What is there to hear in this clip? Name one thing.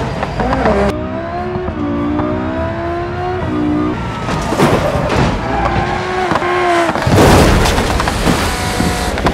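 An engine revs as a car speeds along.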